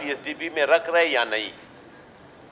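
A man speaks with animation into a microphone.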